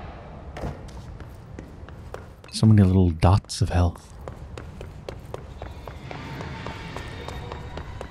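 Footsteps walk on a hard floor at a steady pace.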